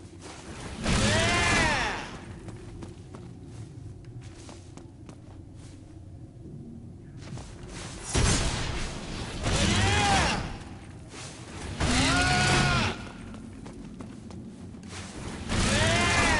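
A launch pad flings a character into the air with a whooshing, swooping tone.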